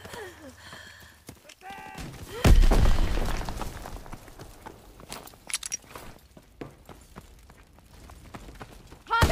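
Footsteps run over gravel.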